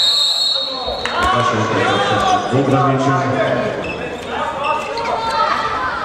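Spectators chant and shout in a large echoing hall.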